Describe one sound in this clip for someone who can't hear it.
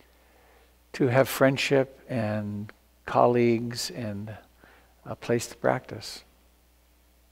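An elderly man speaks calmly and slowly into a nearby microphone, then falls silent.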